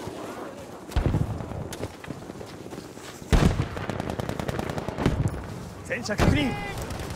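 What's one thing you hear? Heavy explosions boom in short bursts.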